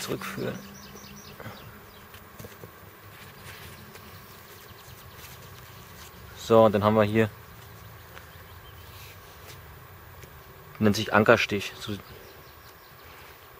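A cord rustles softly as it is tied to a tarp.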